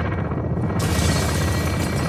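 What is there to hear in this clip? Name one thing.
A heavy truck engine rumbles close by.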